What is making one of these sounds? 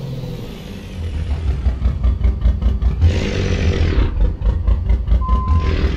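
A diesel truck engine rumbles louder and deeper as it pulls away.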